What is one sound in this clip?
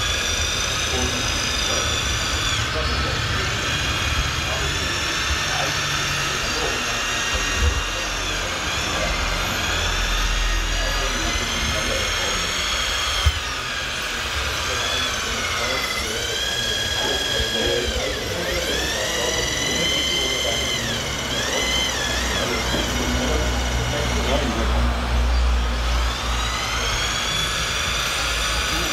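A model excavator's electric motors whine, rising and falling in pitch.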